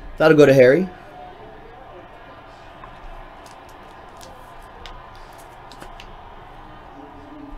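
Cardboard packs rustle and tap as they are handled.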